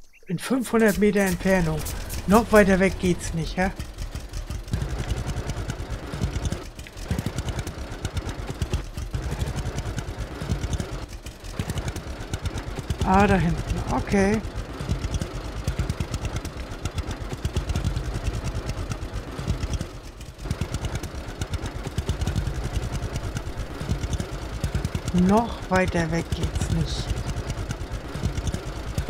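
A small tractor engine chugs steadily at low revs.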